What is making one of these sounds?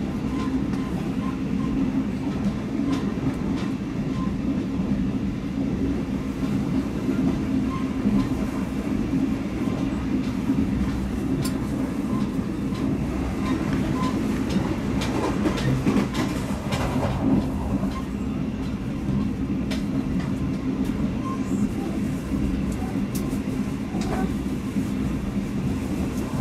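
Wheels click and clatter over rail joints.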